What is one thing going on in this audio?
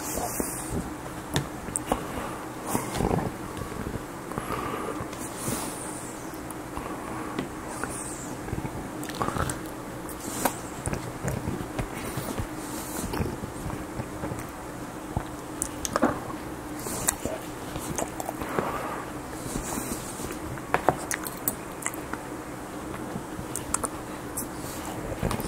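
A fork scrapes and clinks on a plate.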